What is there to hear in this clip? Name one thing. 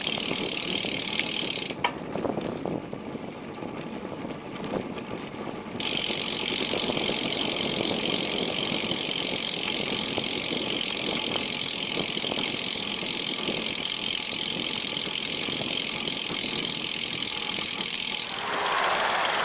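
Bicycle tyres roll and rumble over paving stones.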